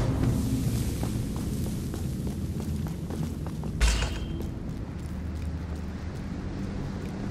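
Footsteps crunch softly on rocky ground.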